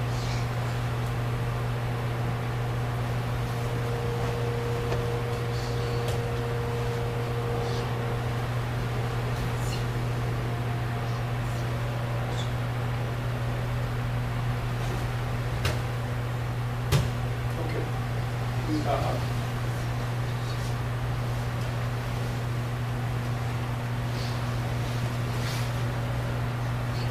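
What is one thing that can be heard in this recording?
A wall fan hums steadily.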